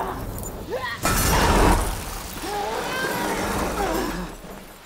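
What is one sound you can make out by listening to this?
Broken debris clatters and scatters across the ground.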